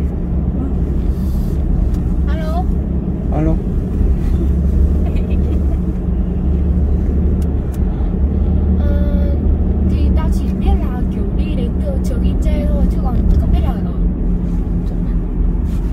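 A car engine hums steadily with road noise from inside the car.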